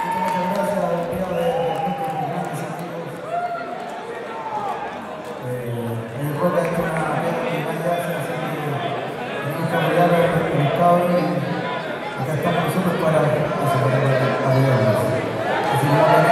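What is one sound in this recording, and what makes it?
A live band plays rock music through loudspeakers in a large echoing hall.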